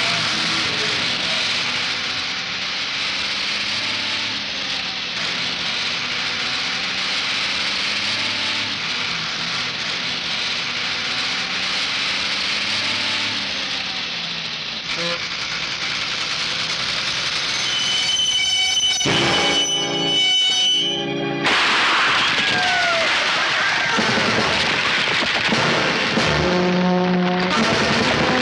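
A bus engine rumbles.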